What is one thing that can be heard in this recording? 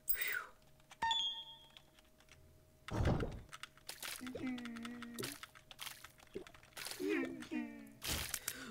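Small wet pops sound as a tiny figure fires shots.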